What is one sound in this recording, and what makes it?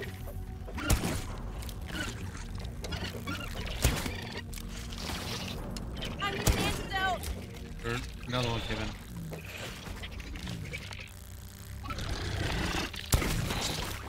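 A crossbow fires with sharp thuds.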